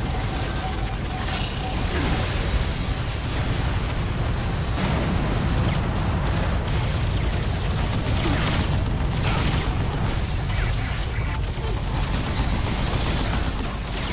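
Rapid gunfire rattles and booms in a video game.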